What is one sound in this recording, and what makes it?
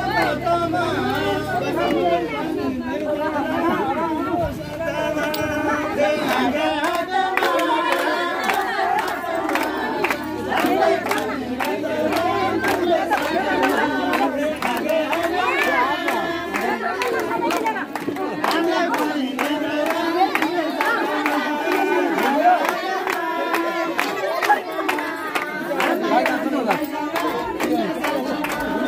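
A crowd of women sing together loudly nearby.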